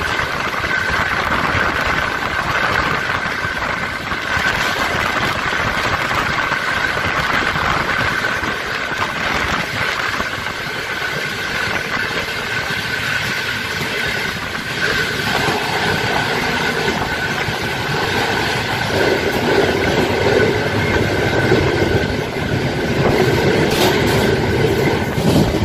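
A train rumbles and clatters along the tracks at speed.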